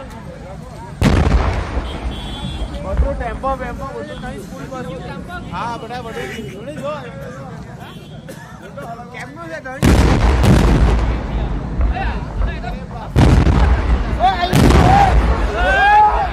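Large explosions boom loudly, one after another.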